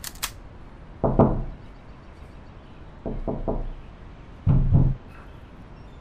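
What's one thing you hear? A fist bangs hard on a metal door several times.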